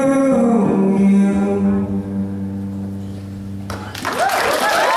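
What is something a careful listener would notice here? A young man sings a long held note into a microphone.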